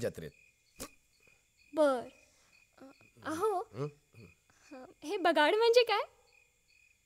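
A young woman speaks softly and playfully nearby.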